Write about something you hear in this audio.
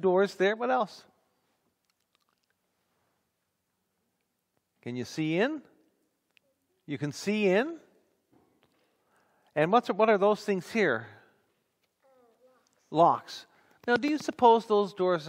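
A man speaks calmly through a headset microphone, in short phrases with pauses.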